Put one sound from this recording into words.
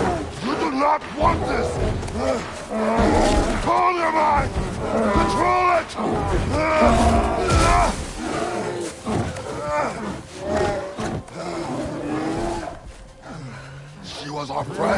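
A man speaks in a deep, strained voice.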